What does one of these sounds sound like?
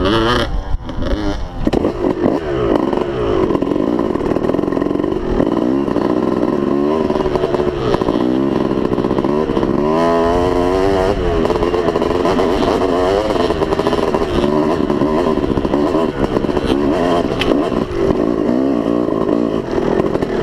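A dirt bike engine revs up and down as it climbs a trail.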